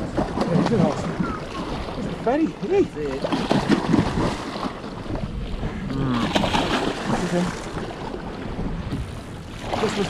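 A large fish thrashes and splashes at the water's surface.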